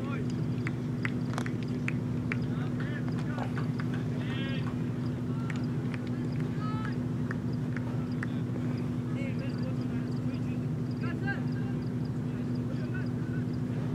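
Men call out to each other in the distance, outdoors.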